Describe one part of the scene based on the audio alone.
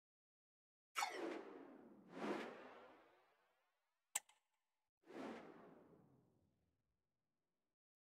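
Deep whooshes sweep past and fade away.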